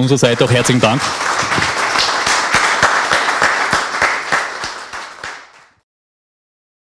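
An audience applauds and then fades out.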